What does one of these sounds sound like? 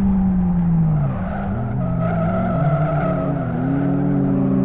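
Tyres squeal as a car brakes into a corner.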